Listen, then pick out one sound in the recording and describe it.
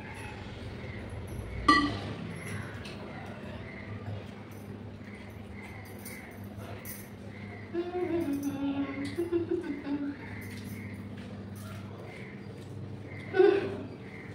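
Hands mix food with soft squelching.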